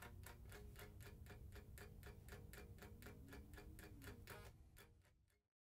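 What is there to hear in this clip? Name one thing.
A man plays an electric guitar.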